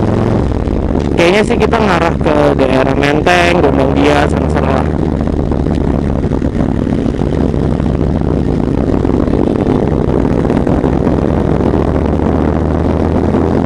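A V-twin Harley-Davidson touring motorcycle engine rumbles while cruising.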